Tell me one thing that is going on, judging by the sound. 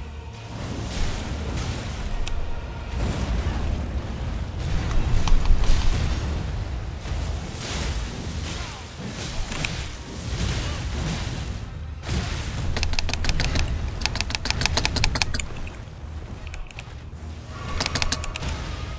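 Swords clash and strike with loud metallic hits.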